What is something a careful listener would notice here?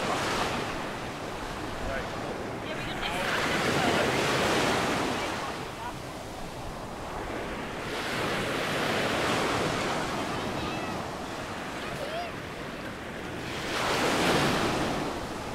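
Small waves break and wash onto the shore in slow surges.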